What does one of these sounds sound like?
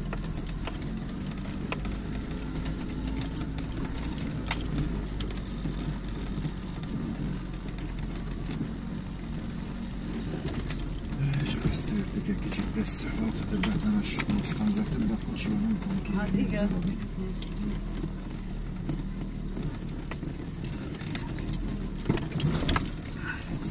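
A vehicle engine rumbles steadily as it drives slowly.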